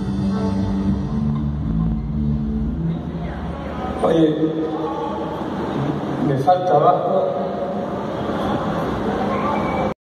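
A band plays loud amplified rock music, echoing through a large empty hall.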